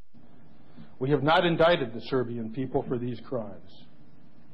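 A middle-aged man speaks formally through a microphone.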